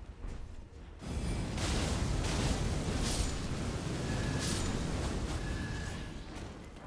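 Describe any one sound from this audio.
Flames burst and roar loudly.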